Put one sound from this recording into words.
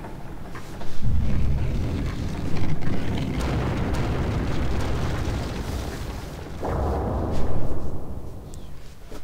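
Heavy stone machinery rumbles and grinds loudly.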